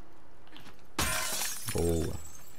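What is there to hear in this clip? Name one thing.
A glass bottle smashes against a window with a sharp crash.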